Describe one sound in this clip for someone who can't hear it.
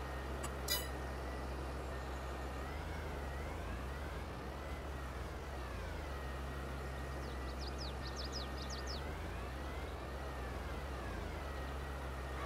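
A tractor engine hums steadily, rising and falling in pitch as it drives.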